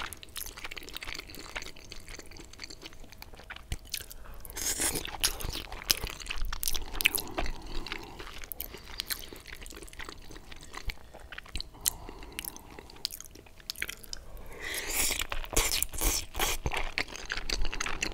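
A fork scrapes and clinks on a plate.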